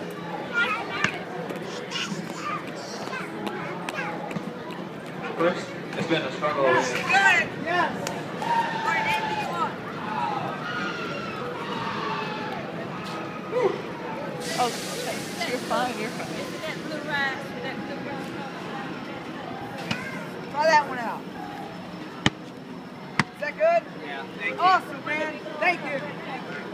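A crowd chatters steadily in the background.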